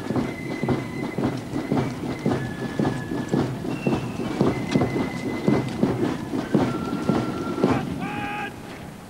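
Horses' hooves clop steadily on hard ground.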